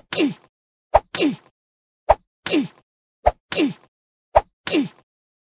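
Punchy game impacts thump in quick succession.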